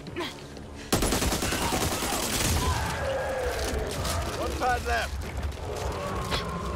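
An automatic rifle fires rapid bursts close by.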